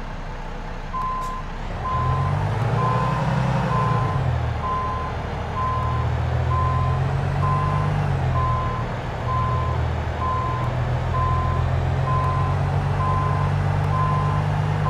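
A reversing alarm beeps steadily.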